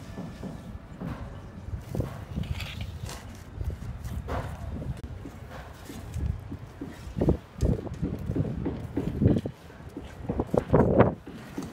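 A trowel scrapes and slaps wet mortar.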